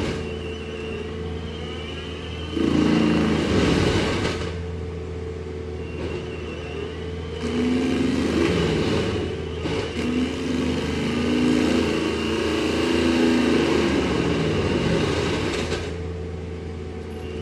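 A heavy machine's diesel engine rumbles steadily nearby.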